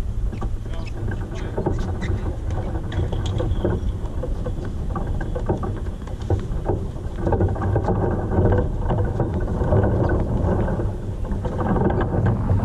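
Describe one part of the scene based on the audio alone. Wind blows steadily across the microphone outdoors.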